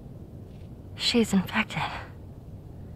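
A girl speaks quietly and anxiously.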